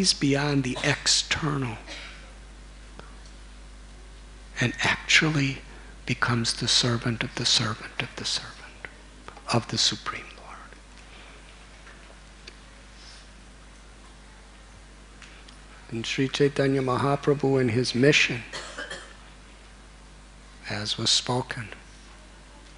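A middle-aged man speaks calmly and expressively into a microphone, in bursts with pauses.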